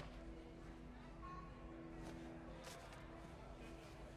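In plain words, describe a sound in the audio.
Paper rustles as an envelope is handled.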